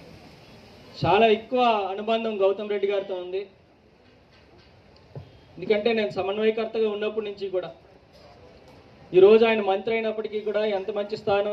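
A young man speaks loudly into a microphone, heard through a loudspeaker outdoors.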